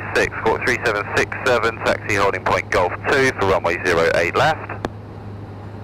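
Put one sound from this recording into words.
A man speaks calmly through a headset intercom.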